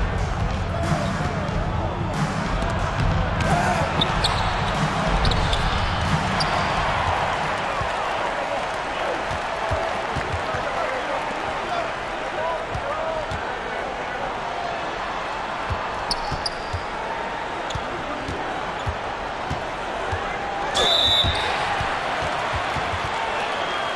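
A basketball bounces on a court floor.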